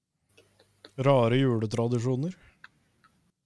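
A man speaks with animation into a close microphone, heard as if over an online call.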